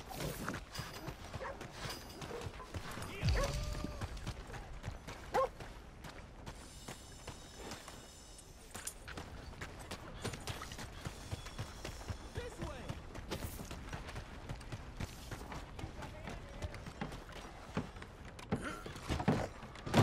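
Footsteps run on muddy ground.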